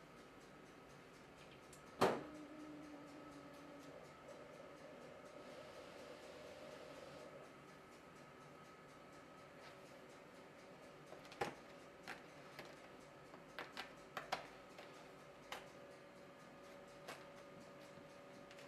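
A large printer hums steadily.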